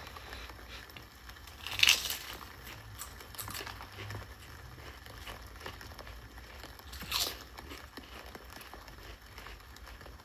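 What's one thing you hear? A young man crunches potato chips.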